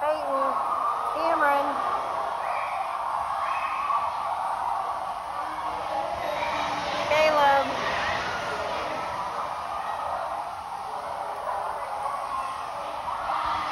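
Many voices chatter steadily in the background.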